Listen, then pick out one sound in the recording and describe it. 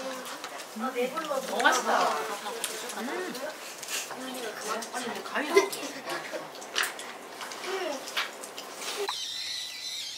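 Children and adults chatter and talk over each other nearby.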